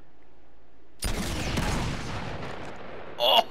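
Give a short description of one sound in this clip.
A rocket launcher fires and an explosion booms, then rumbles away.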